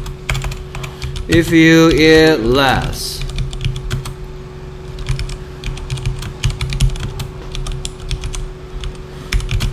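Keys clatter as someone types on a keyboard.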